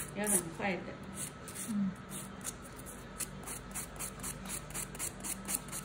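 A nail file rasps back and forth in quick, even strokes.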